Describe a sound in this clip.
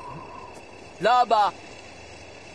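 A man shouts briefly.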